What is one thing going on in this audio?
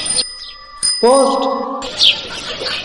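A bicycle bell rings.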